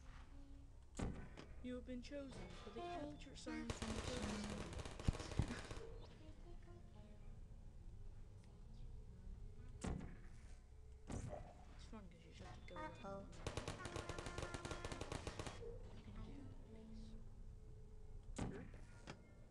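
A gun fires with sharp zaps.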